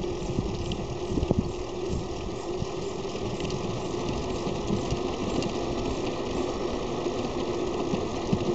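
Tyres roll over asphalt.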